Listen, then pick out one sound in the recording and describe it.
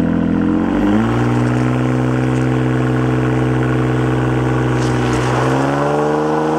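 A sports car engine idles with a deep, loud rumble close by.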